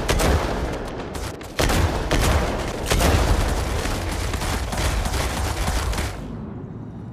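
Heavy gunfire and blasts rattle rapidly.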